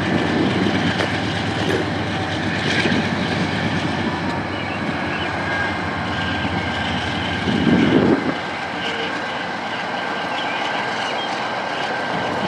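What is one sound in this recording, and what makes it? Diesel locomotives rumble steadily as a train rolls slowly past.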